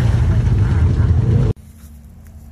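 An off-road vehicle's engine roars up close.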